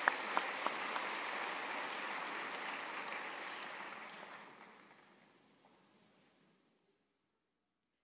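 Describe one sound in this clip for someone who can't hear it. Applause from a large crowd echoes through a big hall and fades away.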